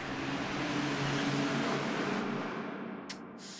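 Traffic rushes past at speed.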